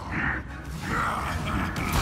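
A magical blast bursts with a crackling roar.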